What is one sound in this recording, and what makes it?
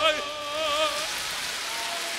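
A man sings a long, wavering note into a microphone in a large hall.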